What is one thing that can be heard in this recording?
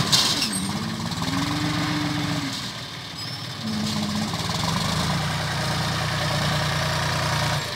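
A loader bucket scrapes and scoops through soil.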